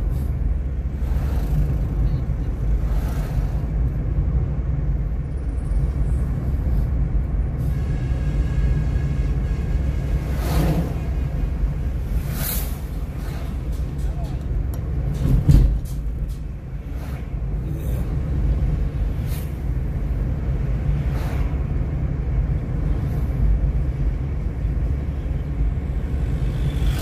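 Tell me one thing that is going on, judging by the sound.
A car engine hums steadily from inside the car while it drives.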